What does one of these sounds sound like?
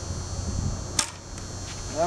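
A bowstring snaps sharply as an arrow is shot.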